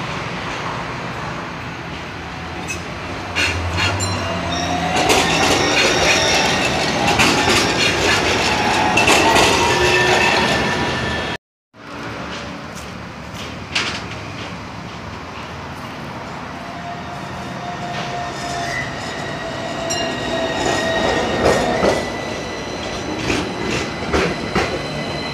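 An electric tram rolls past on rails.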